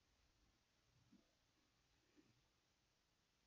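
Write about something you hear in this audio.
Fingertips lightly tap and click against a phone's casing.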